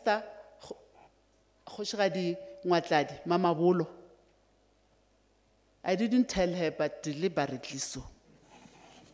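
An older woman speaks calmly into a microphone, with pauses.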